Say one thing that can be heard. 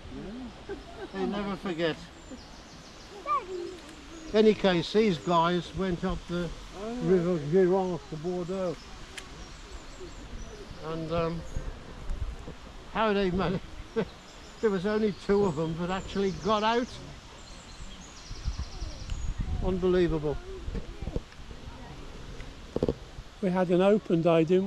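An elderly man talks calmly close by, outdoors.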